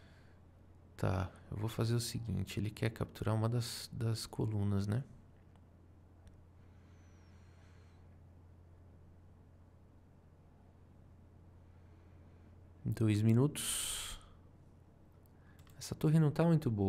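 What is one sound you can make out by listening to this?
A man speaks calmly and thoughtfully into a close microphone.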